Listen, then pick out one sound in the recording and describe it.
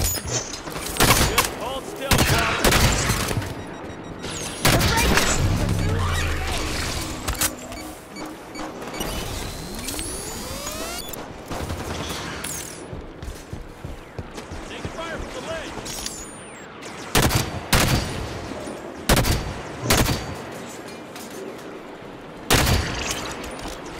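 Gunfire bangs out in loud, sharp bursts.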